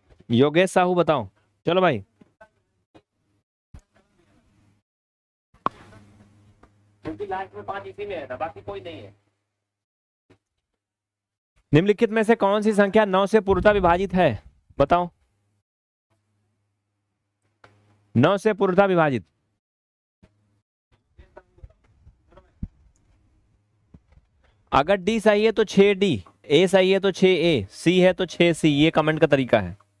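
A young man speaks with animation into a headset microphone, in bursts with pauses.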